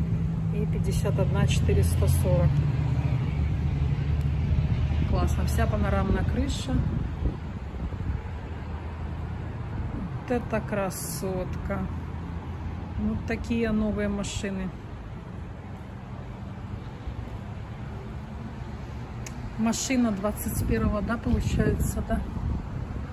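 A woman talks calmly close to the microphone.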